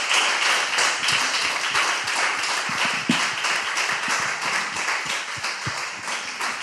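A man claps his hands steadily.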